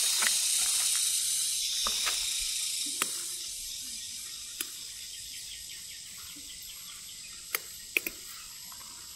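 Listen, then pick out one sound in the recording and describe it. Leafy plant stems snap.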